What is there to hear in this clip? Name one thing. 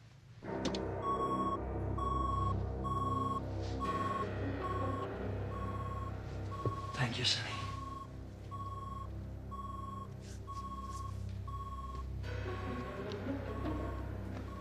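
An electronic device beeps steadily and repeatedly.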